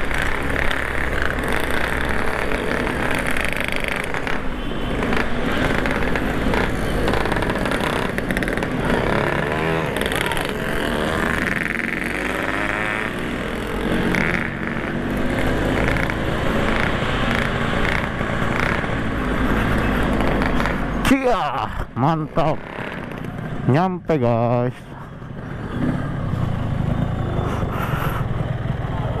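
A motorcycle engine rumbles steadily.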